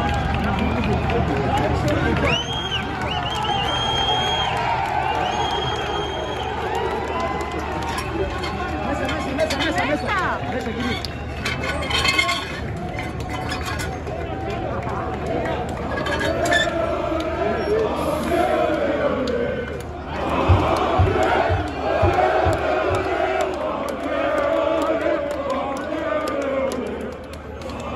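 A large crowd of men chants and cheers loudly outdoors.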